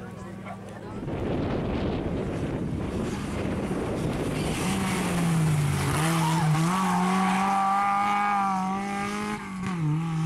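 A car engine roars loudly close by as the car accelerates away.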